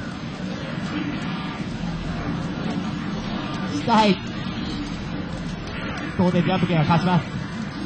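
Hits crack in an arcade fighting game.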